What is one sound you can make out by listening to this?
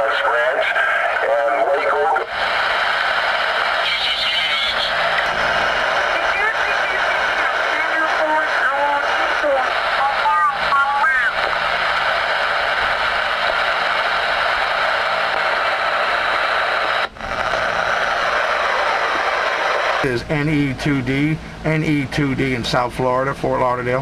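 Static hisses and crackles steadily from a radio loudspeaker.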